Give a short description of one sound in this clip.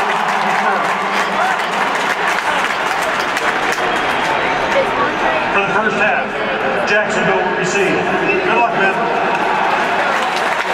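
A large stadium crowd murmurs and cheers loudly throughout.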